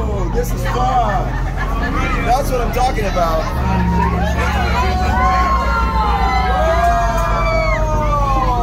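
A group of adults and children sing loudly and excitedly close by.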